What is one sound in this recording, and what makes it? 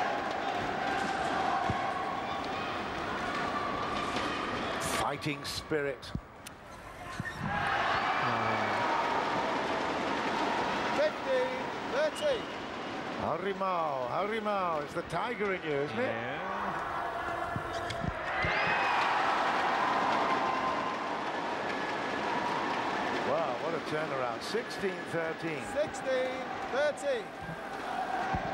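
A large crowd cheers and bangs clappers loudly in an echoing hall.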